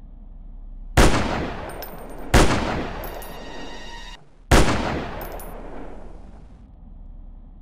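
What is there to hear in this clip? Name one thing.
A rifle fires sharp, booming shots that ring out and fade slowly.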